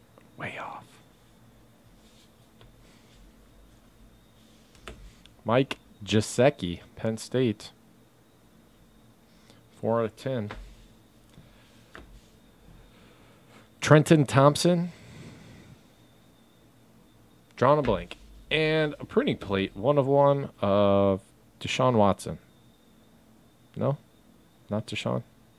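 Hard plastic card cases click softly as they are handled.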